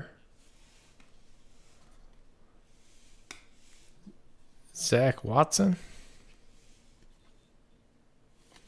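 Trading cards slide and rustle softly in a hand.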